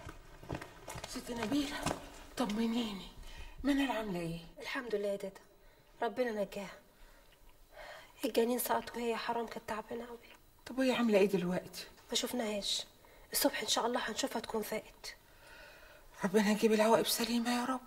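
An older woman speaks with emotion close by.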